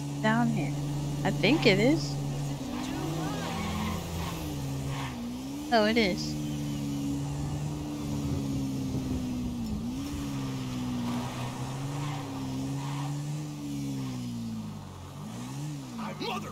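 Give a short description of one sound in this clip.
A motorbike engine drones steadily, rising and falling in pitch as the rider speeds up and slows down.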